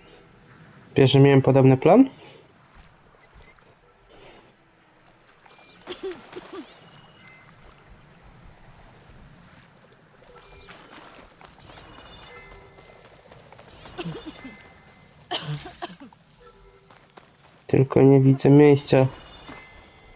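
An electronic scanner chimes with a bright, pulsing tone.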